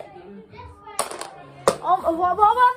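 Dice clatter onto a hard floor.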